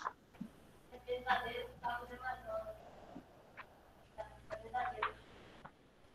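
A young girl speaks quietly through an online call.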